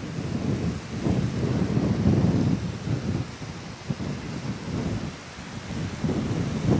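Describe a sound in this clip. Strong wind gusts and buffets outdoors.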